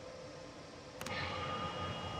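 A switch clicks in a train cab.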